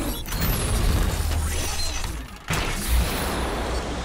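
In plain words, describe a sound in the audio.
Robotic arms whir and clank.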